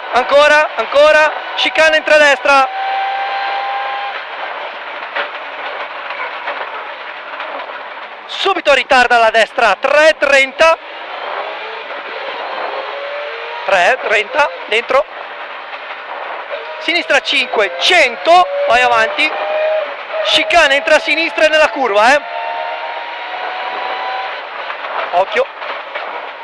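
A man reads out pace notes quickly over an intercom.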